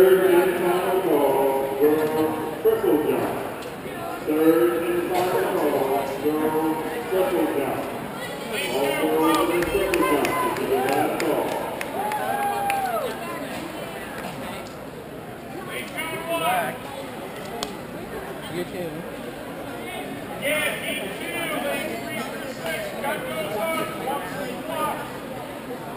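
A crowd murmurs in the background in a large echoing hall.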